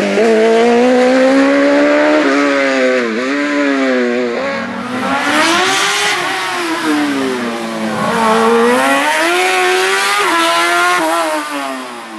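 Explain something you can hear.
A racing car engine revs hard, its pitch rising and falling as the gears shift.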